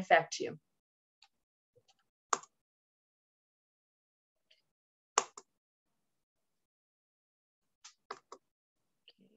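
A woman speaks calmly over an online call, in short bursts.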